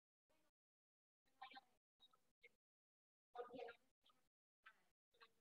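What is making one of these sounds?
A young woman speaks in short bursts over an online call.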